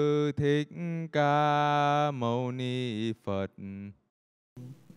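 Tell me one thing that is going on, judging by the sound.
A group of monks chants together in a large echoing hall.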